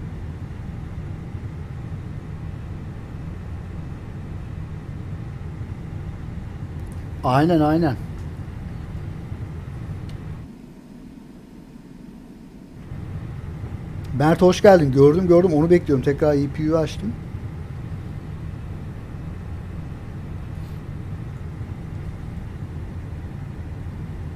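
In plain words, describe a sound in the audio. A jet engine hums steadily at idle.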